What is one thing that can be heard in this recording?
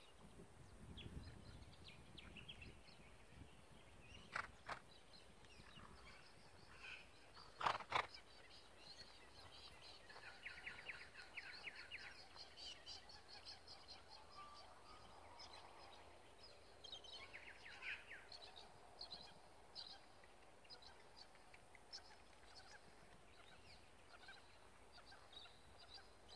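A horse's hooves thud faintly on grass in the distance.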